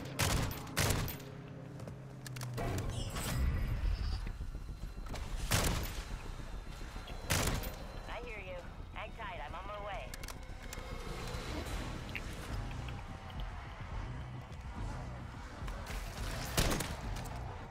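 A gun fires sharp single shots.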